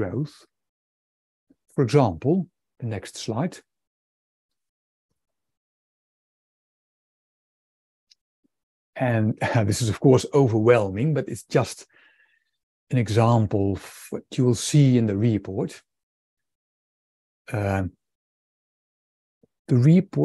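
A man speaks calmly over an online call, pausing now and then.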